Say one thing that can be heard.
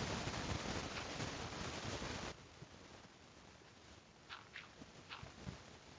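Blocks crunch as they are dug out.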